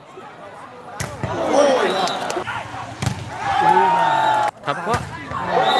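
A volleyball is struck hard with a sharp slap.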